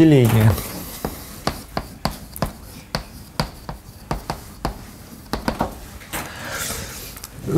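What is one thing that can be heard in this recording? Chalk taps and scrapes on a chalkboard.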